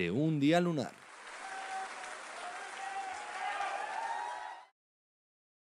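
A crowd claps.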